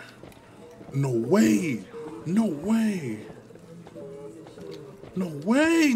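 A man exclaims loudly into a close microphone.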